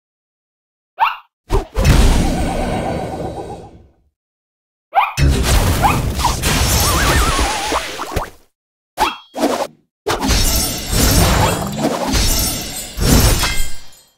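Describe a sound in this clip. Cartoon battle effects whoosh and crash in bursts.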